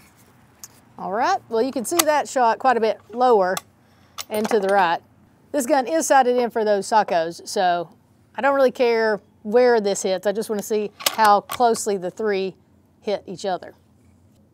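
A woman talks calmly and clearly into a microphone.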